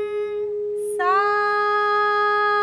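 A woman sings a held note.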